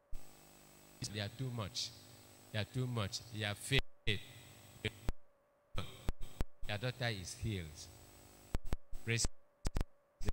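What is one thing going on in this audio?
A man speaks with animation through a microphone and loudspeakers.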